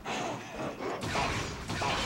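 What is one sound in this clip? A heavy blade strikes with a loud metallic clash.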